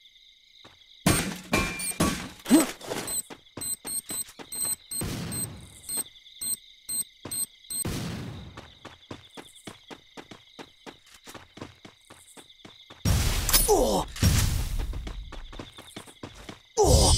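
Quick footsteps thud on a wooden floor.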